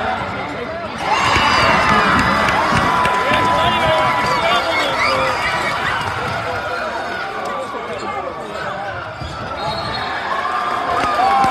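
Spectators clap their hands.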